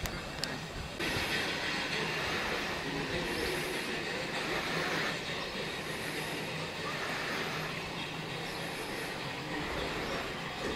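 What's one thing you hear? A narrowboat engine chugs steadily close by.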